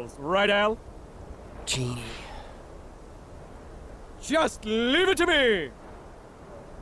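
A man speaks with lively animation, close and clear.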